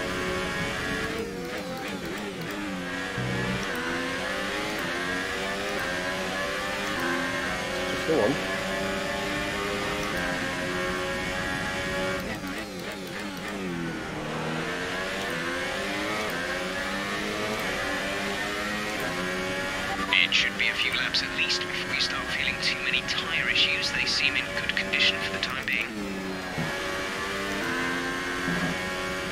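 A racing car engine screams at high revs, rising and dropping in pitch as it shifts gears and brakes.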